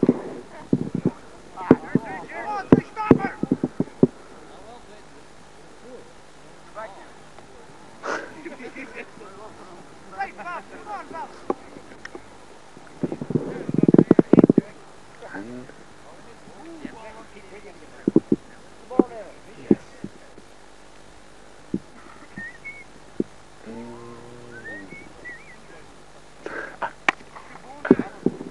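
Men talk and call out across an open field.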